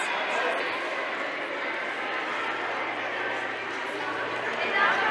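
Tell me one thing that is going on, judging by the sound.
A crowd of young girls chatters and cheers excitedly in an echoing hall.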